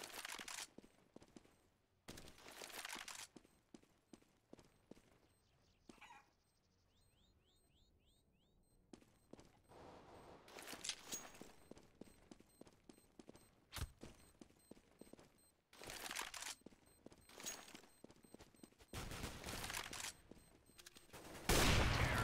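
Footsteps tap on stone at a quick pace.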